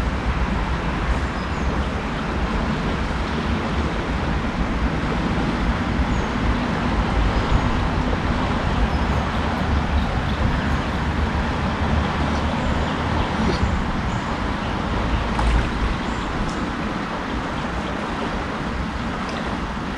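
A river flows and ripples steadily outdoors.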